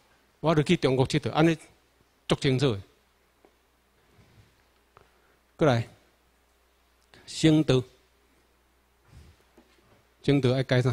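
A man speaks through a microphone and loudspeakers in short phrases, with pauses, in a large room.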